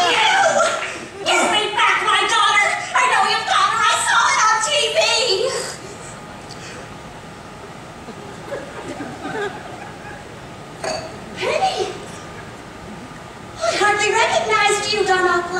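A woman talks with animation through a sound system in a large hall.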